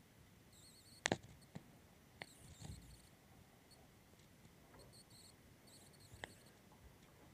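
A large snake's body knocks against a plastic tub as it is handled.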